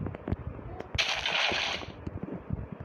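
Water splashes out of a bucket.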